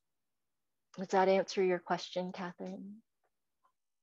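A woman speaks calmly into a microphone, heard through an online call.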